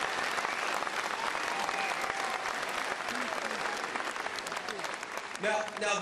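A large crowd cheers and claps loudly.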